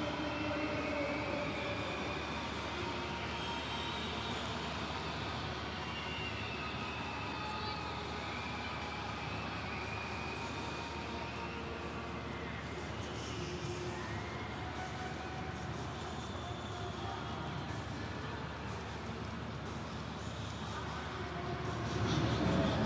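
A stadium crowd chants and sings steadily, echoing in a large open arena.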